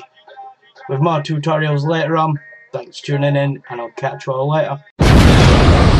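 A young man speaks casually and close, through a microphone.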